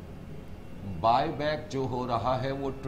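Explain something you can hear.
A man speaks up close in a lecturing tone.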